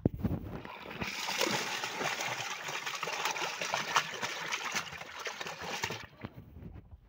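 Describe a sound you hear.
Fish and water splash loudly as a bucket is emptied into a pond.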